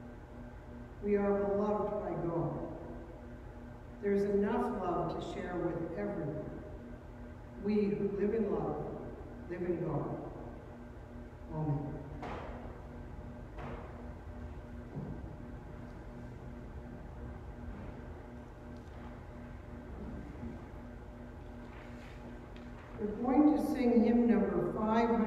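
An older woman sings slowly through a microphone in a large echoing hall.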